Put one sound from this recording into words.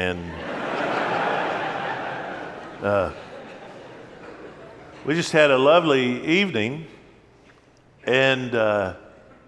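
An elderly man preaches with animation through a microphone in a large echoing hall.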